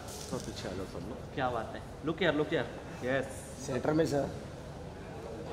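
A man talks and calls out nearby in an echoing hall.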